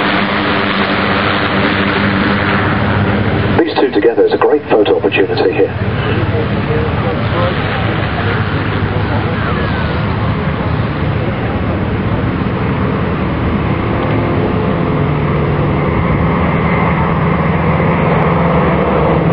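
Propeller engines drone steadily overhead, growing louder as the planes approach.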